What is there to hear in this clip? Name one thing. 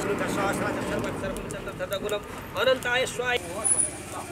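A wood fire crackles close by.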